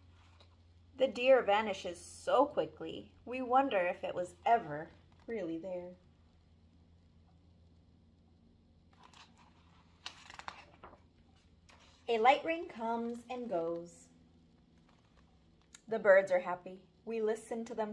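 A young woman reads a story aloud close by, with pauses.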